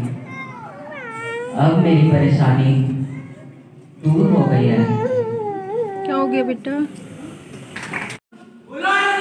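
A man sings through a loudspeaker in a large echoing hall.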